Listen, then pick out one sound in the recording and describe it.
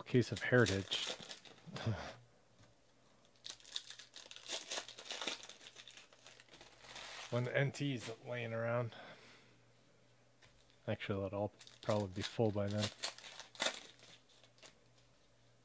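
Foil card wrappers crinkle and tear as packs are opened.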